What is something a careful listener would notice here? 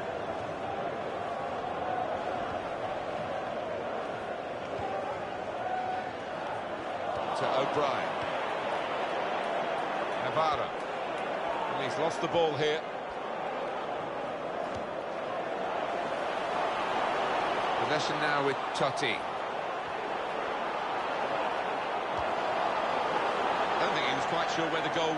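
A large stadium crowd murmurs and roars steadily, swelling at times.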